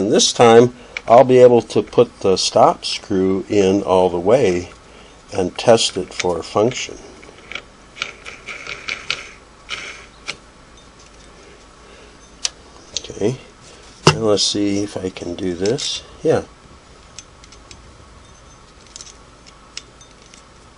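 A sewing machine handwheel is turned by hand with faint mechanical clicks.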